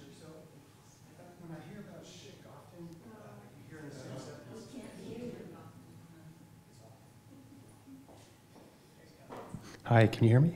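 A woman speaks calmly, heard through a microphone in a large room.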